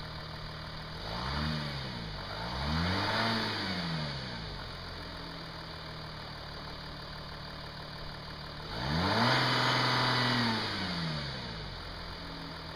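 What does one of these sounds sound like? A car engine revs up sharply and drops back, three times.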